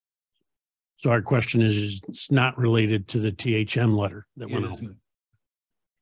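A man speaks clearly into a nearby microphone.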